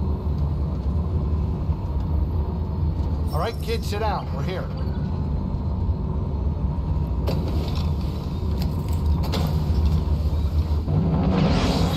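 A spacecraft's engines hum with a deep, steady rumble.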